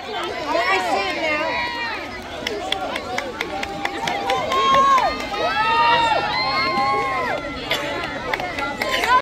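A large crowd of children chatters and shouts excitedly outdoors.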